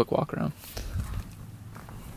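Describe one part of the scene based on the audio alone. A car rumbles along the road.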